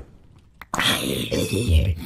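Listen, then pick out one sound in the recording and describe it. A sword strikes a creature with a sharp hit.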